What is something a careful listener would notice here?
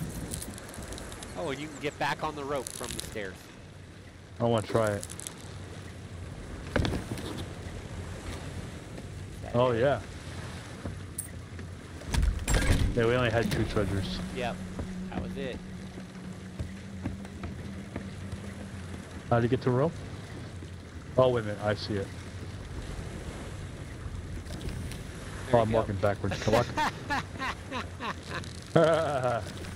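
Waves lap gently against a wooden ship.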